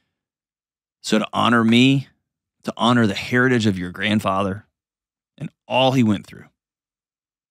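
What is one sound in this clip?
A man speaks with animation, close into a microphone.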